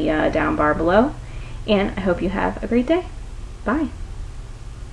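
A woman speaks cheerfully and close to a microphone.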